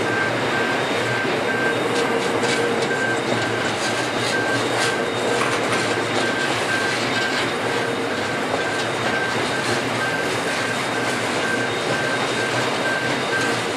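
A level crossing alarm rings in a steady pulse.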